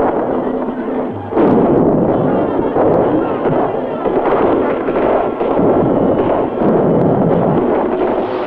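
A large crowd of men shouts and roars in battle.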